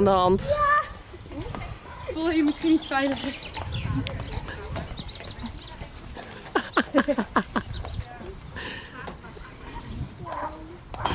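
Horse hooves thud softly on sand.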